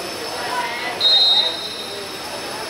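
A referee's whistle blows a short, sharp blast.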